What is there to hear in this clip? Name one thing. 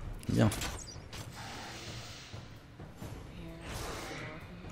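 A magic spell bursts with a whoosh.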